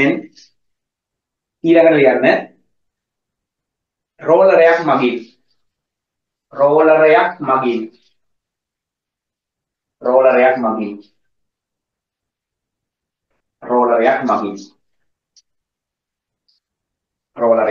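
A man speaks calmly in short bursts through a microphone.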